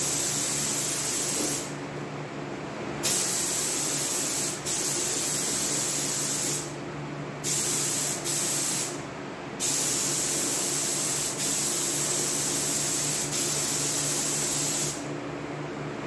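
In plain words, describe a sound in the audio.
A spray gun hisses loudly in short bursts.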